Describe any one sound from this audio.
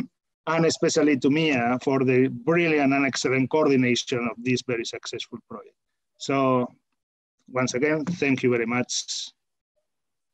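A middle-aged man talks with animation over an online call.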